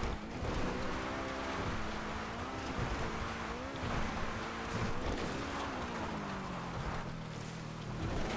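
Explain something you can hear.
A sports car engine roars and revs at high speed.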